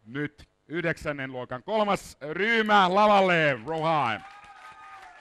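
A man speaks loudly and with animation through a microphone.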